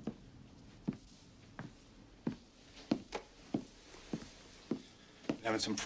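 Footsteps knock on a hard floor.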